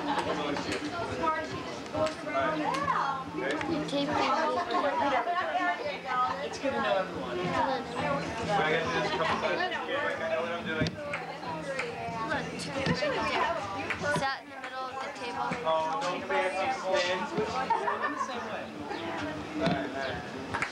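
Several adults talk and chatter casually nearby.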